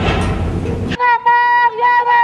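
A crowd of people chants outdoors.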